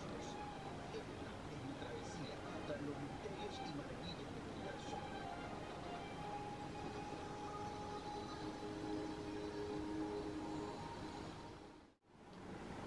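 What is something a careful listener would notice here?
Soft music plays from a television.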